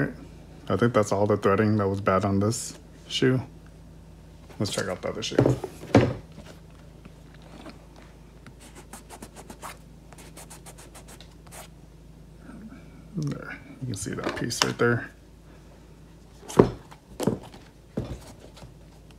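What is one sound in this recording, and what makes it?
A leather sneaker creaks and rubs as hands turn it over.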